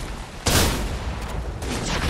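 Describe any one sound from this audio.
Gunshots blast in a video game.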